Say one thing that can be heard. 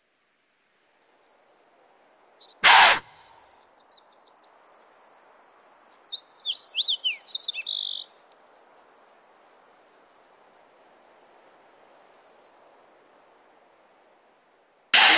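Wind blows softly through tall grass outdoors.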